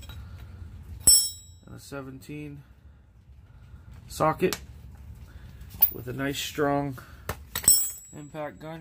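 Metal tools clink sharply against a hard floor.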